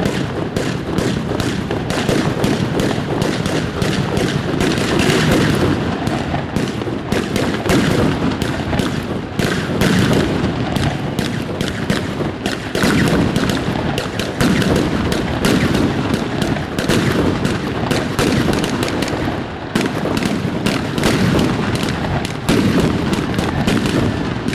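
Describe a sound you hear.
Fireworks crackle and bang rapidly, close by.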